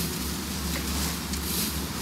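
A burning road flare hisses and crackles.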